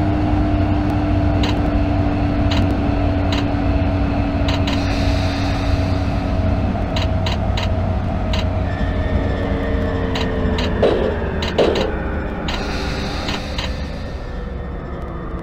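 An electric train's motor whines and winds down in pitch as the train slows.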